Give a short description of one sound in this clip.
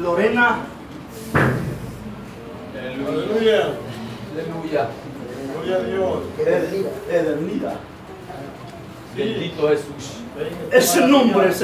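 A man preaches with animation, his voice echoing in a reverberant hall.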